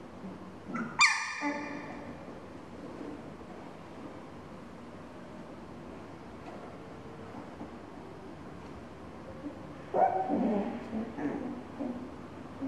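A young puppy yaps shrilly.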